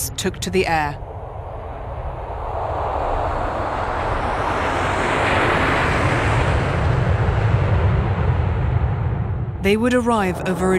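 A jet engine roars loudly, swelling and then fading.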